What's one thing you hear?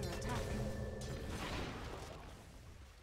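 A magical blast bursts with a loud crackling whoosh.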